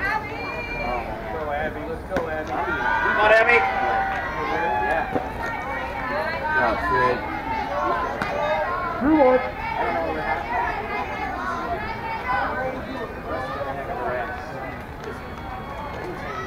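Young women shout and cheer outdoors.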